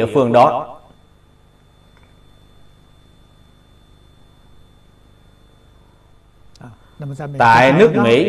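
An elderly man speaks calmly and slowly into a close microphone, pausing between phrases.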